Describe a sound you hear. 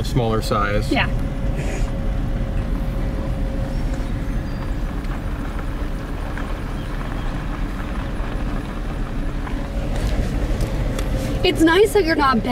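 Tyres crunch slowly over a gravel road.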